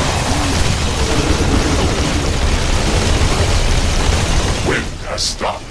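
Gunfire and explosions rattle in a dense, noisy battle.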